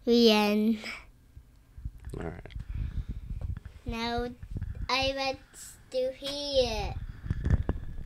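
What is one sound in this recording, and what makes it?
A young child speaks excitedly in a high voice, close to a microphone.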